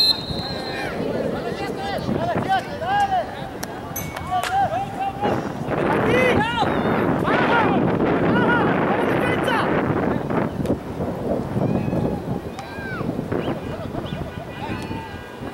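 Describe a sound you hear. Young men shout to each other across an open field outdoors.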